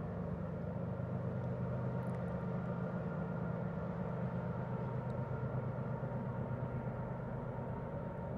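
A freight train rumbles steadily in the distance with a low engine drone.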